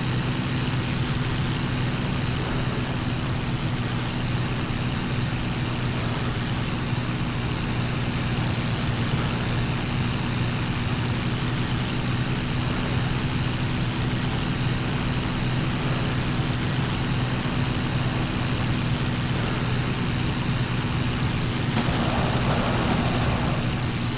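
Wind rushes past an aircraft in flight.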